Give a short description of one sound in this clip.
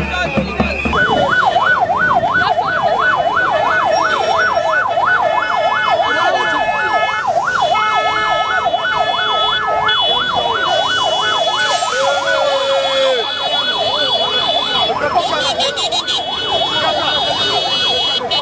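A police siren wails rapidly up and down nearby.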